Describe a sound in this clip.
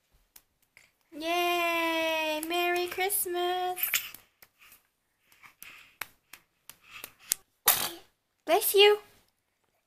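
Small hands clap softly.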